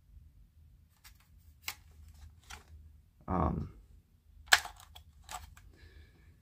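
A plastic toy dart blaster clicks and rattles as it is handled.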